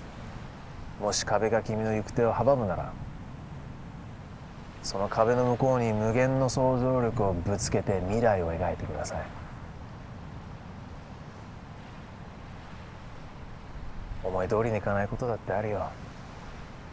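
A young man speaks calmly and quietly nearby.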